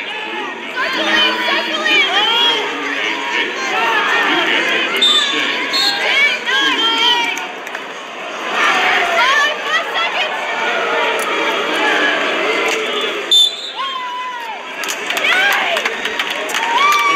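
A crowd shouts and cheers loudly in a large echoing arena.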